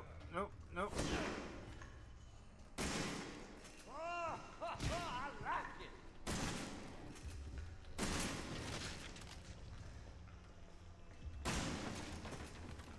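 A shotgun fires loud blasts, one after another.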